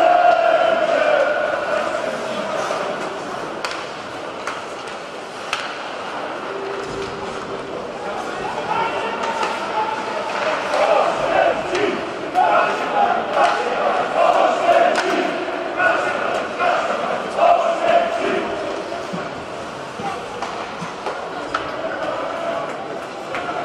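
Pucks and sticks clack sharply in a large echoing arena.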